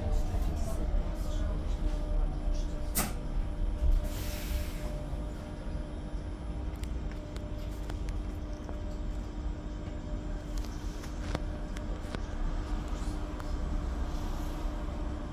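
Fittings inside a bus rattle and click now and then.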